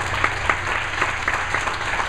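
A man speaks up to a seated audience.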